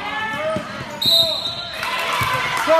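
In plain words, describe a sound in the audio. A referee's whistle blows once, sharp and short.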